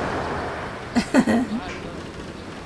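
A young man calls out briefly in the distance.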